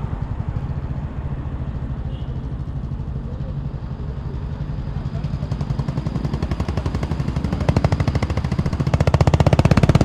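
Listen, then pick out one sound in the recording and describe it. A motorcycle engine throbs close by and revs up louder.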